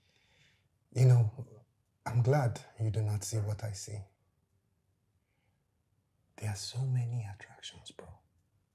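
A younger man answers calmly, close by.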